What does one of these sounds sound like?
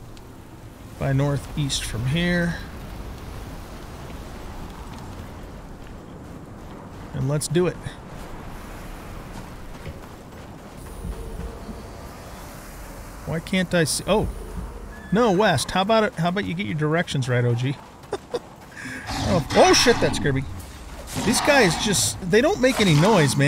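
An older man talks with animation into a close microphone.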